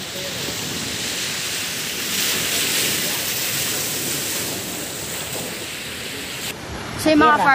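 Waves wash onto a beach in a steady rush.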